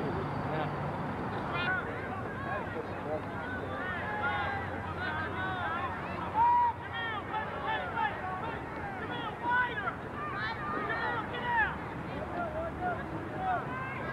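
A crowd of people outdoors shouts and cheers all around.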